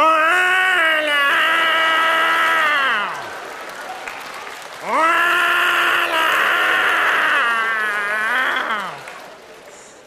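A man sings long, held notes loudly through a microphone.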